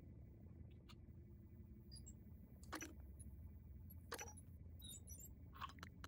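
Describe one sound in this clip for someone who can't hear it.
Soft interface clicks sound as menu items are moved.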